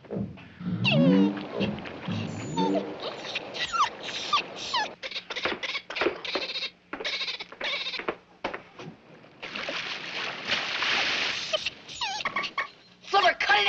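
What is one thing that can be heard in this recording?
A dolphin chatters and whistles close by.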